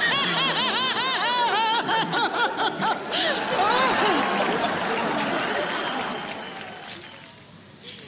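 A large crowd laughs and cheers in a big echoing hall.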